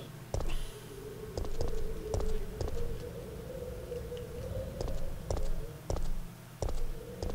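Footsteps clang on a metal grating at a steady walking pace.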